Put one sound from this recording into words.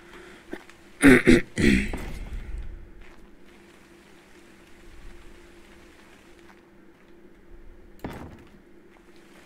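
A wooden ladder knocks and clatters into place.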